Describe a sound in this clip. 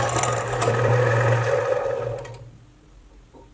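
A lathe motor hums steadily, then winds down.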